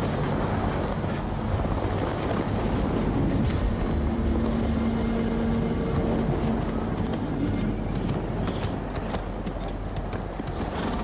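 Banners flap and flutter in a strong wind.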